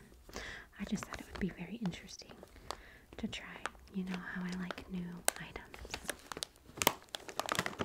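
A plastic snack bag crinkles and rustles in hands.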